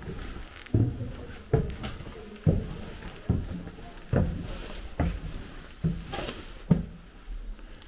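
Footsteps thud on wooden stairs at a steady pace.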